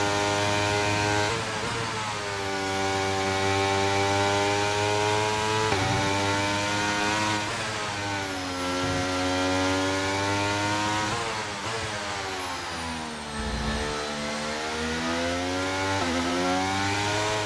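A racing car engine screams at high revs, dropping in pitch with each gear shift.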